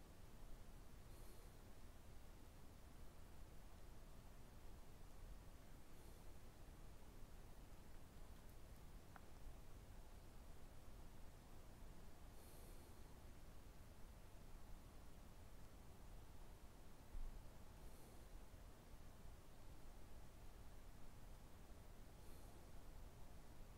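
A man breathes slowly and softly through his nose, close by.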